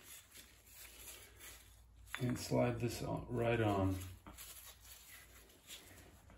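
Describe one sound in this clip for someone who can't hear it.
Rubber gloves rustle and tap against metal engine parts.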